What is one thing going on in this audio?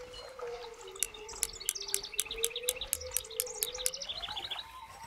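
A fishing reel's drag clicks rapidly.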